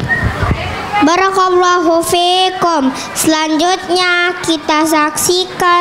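A young girl speaks with animation into a microphone over a loudspeaker.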